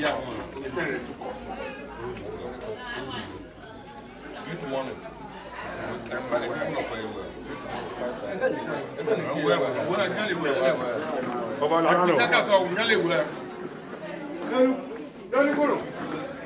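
Several men talk with one another nearby, outdoors.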